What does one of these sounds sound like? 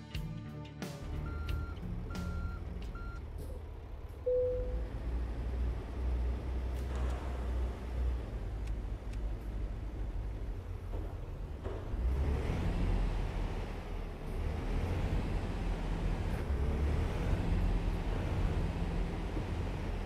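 A truck engine rumbles low and steady, growing louder as it pulls away.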